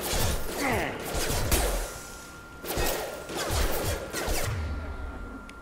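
Gunfire rattles in loud, short bursts.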